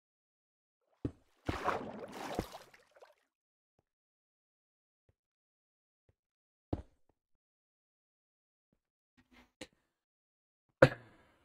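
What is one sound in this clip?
Stone blocks thud as they are placed.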